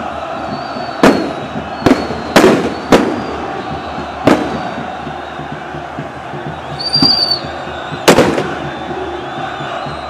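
A large crowd roars and chants in the distance.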